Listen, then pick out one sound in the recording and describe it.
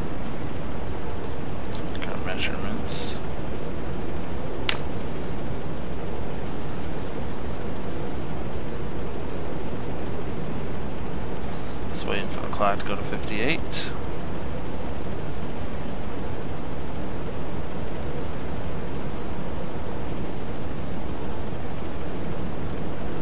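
Waves wash and churn steadily against a hull.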